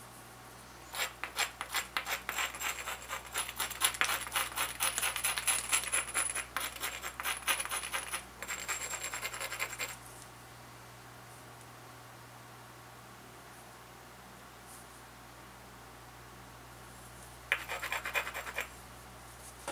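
A hammerstone taps and scrapes along the edge of a stone flake in quick strokes.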